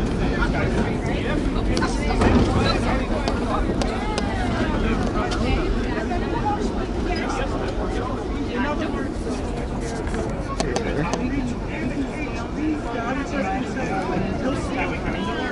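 A subway train rumbles loudly along the tracks.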